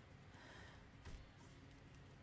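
A blow lands with a dull thud.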